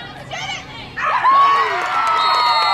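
Young women scream and cheer excitedly.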